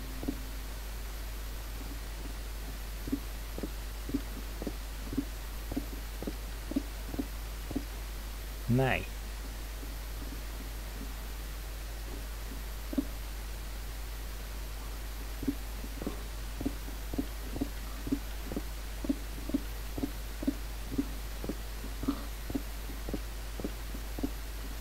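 Footsteps thud steadily on wooden boards in a game.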